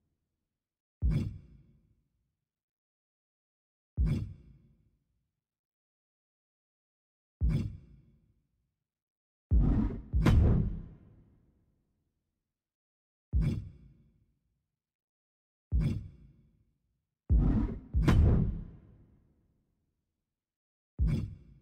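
Deep booming thuds sound each time a game menu switches.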